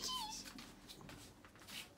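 A young girl makes a soft kissing sound up close.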